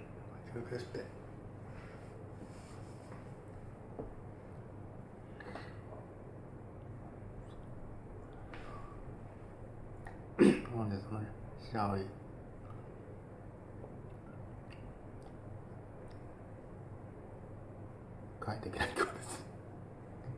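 A middle-aged man speaks briefly and laughs close by.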